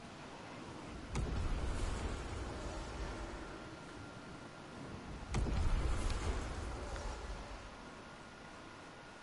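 Wind rushes past a gliding game character.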